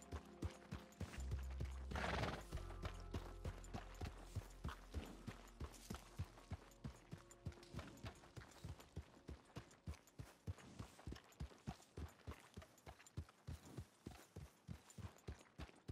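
A horse's hooves clop steadily on soft ground at a trot.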